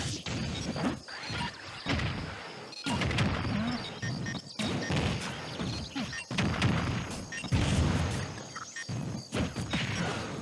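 Video game fighters trade blows with sharp smacks and blasts.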